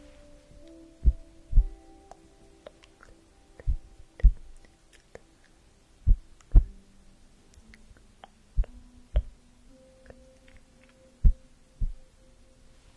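A cloth sheet rustles and brushes against a microphone in soft, dull thumps.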